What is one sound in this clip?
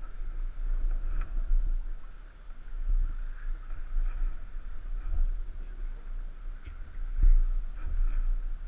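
A river rushes and splashes against a raft.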